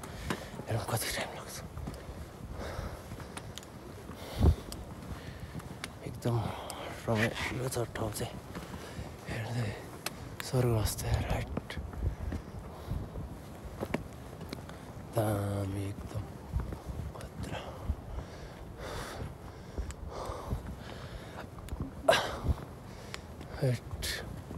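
Footsteps crunch on a rocky trail.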